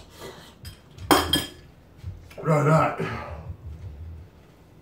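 A man coughs and gasps.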